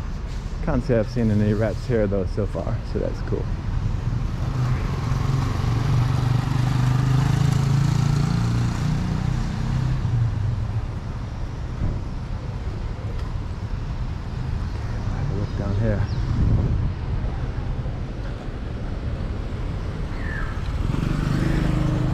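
Light street traffic rumbles steadily outdoors.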